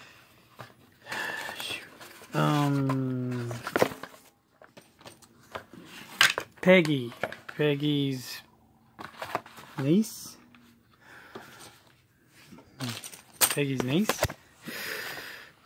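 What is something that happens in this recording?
Cardboard sheets rustle and tap as hands handle them.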